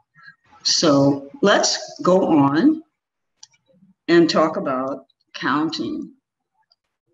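A middle-aged woman speaks calmly over an online call.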